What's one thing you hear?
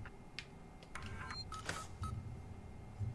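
Electronic beeps sound from a control panel.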